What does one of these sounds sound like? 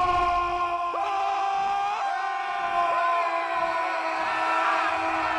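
Several men scream in fright.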